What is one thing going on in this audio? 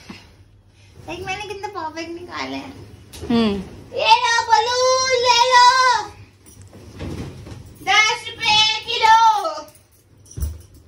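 A young woman sings loudly close by.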